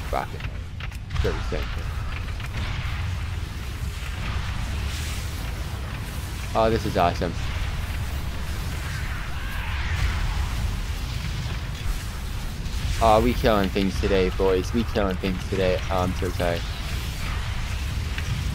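Spell effects whoosh and crackle in a game.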